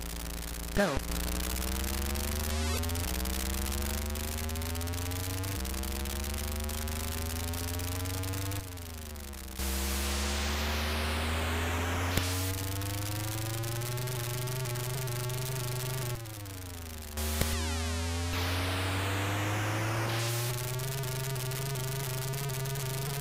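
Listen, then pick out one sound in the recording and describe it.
A game car's engine drones steadily, climbing in pitch and dropping at each gear change.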